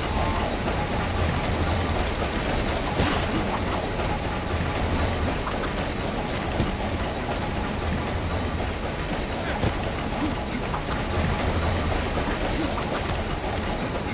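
Wind blows hard in a snowstorm.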